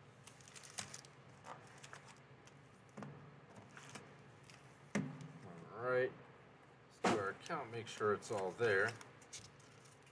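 Foil card packs crinkle and tap as they are stacked on a table.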